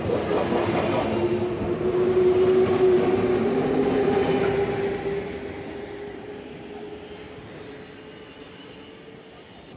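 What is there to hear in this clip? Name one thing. An electric train pulls away close by with a loud whine that slowly fades.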